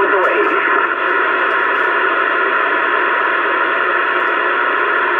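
A CB radio hisses with static through its speaker.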